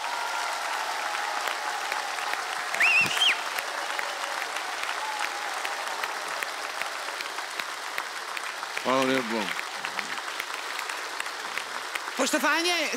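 A crowd claps and cheers steadily in a large hall.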